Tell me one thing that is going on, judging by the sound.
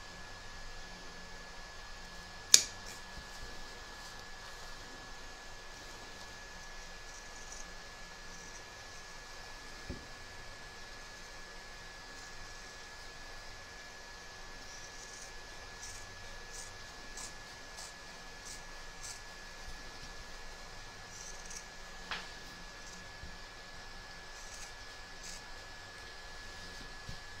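Scissors snip through fabric with soft, quick clicks.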